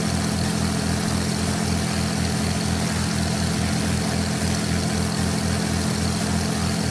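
A propeller engine drones steadily with a low, pulsing hum.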